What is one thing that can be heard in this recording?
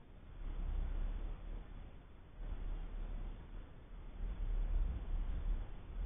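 Wind gusts outdoors, buffeting the microphone with a low rumble.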